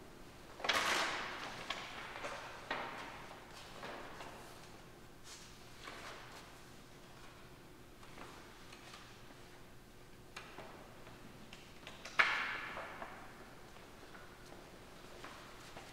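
A man speaks calmly, reading out in a large echoing hall.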